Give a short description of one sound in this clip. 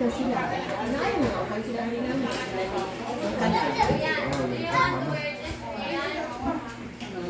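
Serving spoons clink against dishes.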